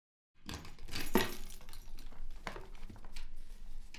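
A padlock rattles and clicks against a cabinet door.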